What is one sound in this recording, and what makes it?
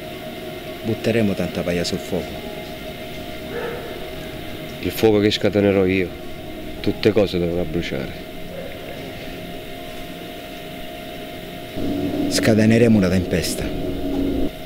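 A man speaks in a low, serious voice close by, in short bursts with pauses.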